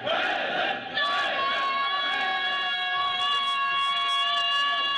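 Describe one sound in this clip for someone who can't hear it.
A man chants a long-held lament through a microphone.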